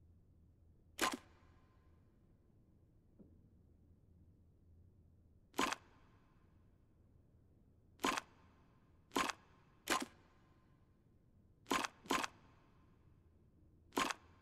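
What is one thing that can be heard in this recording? Puzzle tiles click sharply as they turn into place, a few seconds apart.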